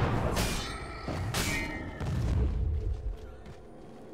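Game spell effects burst and clash in a fight.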